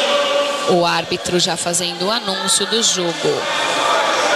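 A woman calls out loudly in a large echoing hall.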